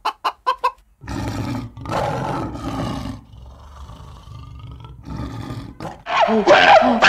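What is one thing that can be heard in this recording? A lion growls deeply.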